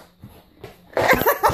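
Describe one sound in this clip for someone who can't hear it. A young girl laughs loudly.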